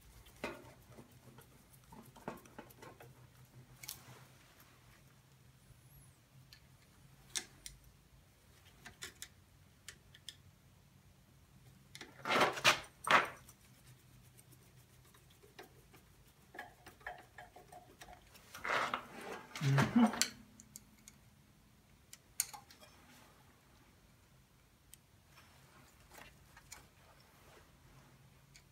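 Metal tools clink and scrape against engine parts.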